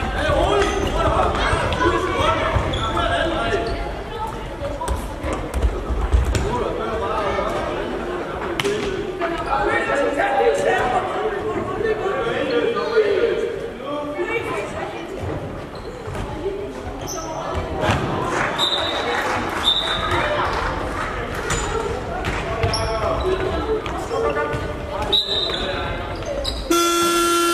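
Young children shout and call out across a large echoing hall.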